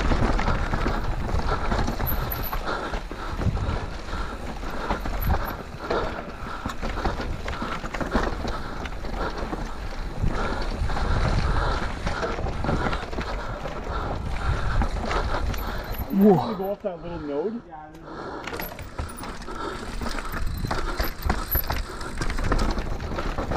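A bicycle frame rattles and clatters over roots and rocks.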